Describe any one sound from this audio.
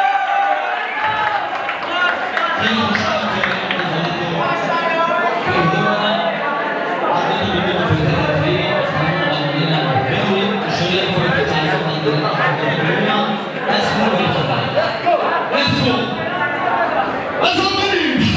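A young man speaks loudly into a microphone over a loudspeaker, in an echoing hall.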